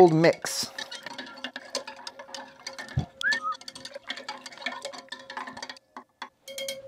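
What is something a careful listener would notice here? A spoon stirs and clinks in a glass of water.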